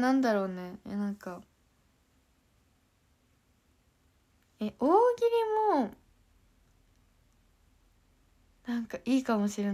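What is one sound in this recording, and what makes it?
A young woman speaks close to a microphone in short, animated bursts with pauses between them.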